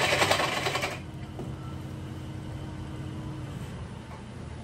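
A bench grinder's motor hums as it winds down.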